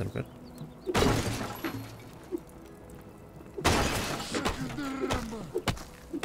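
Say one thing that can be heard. An axe chops into wood with sharp thuds.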